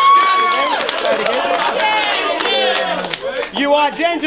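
A crowd cheers and shouts in the background.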